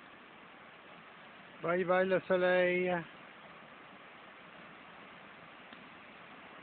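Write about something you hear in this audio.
Small waves wash gently onto the shore.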